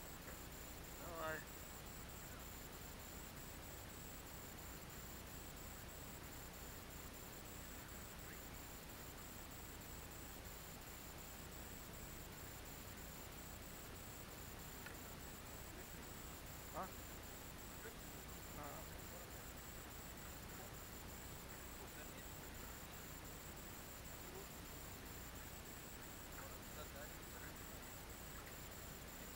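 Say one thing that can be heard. Water laps gently against a boat's hull.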